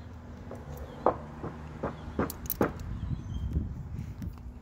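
A metal folding tool clicks open and shut.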